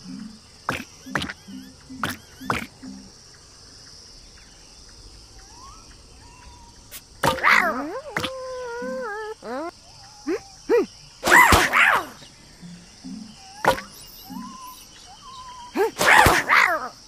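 Cartoon game pieces pop and burst with bright chiming effects.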